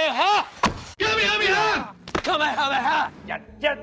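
A young man shouts at another man up close.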